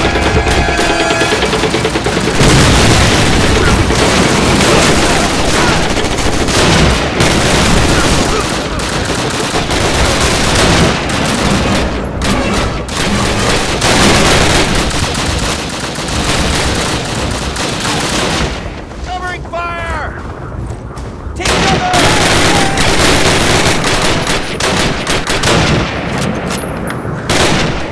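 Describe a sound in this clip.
Gunfire crackles and booms nearby in a battle.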